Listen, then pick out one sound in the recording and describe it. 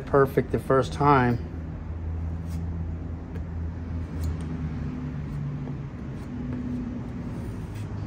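A metal blade scrapes against wood.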